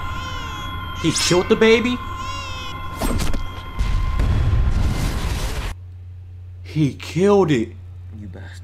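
A young man exclaims loudly and excitedly into a microphone, close by.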